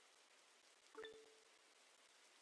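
A short notification chime rings.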